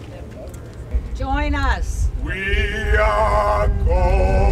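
An elderly man speaks loudly and close by.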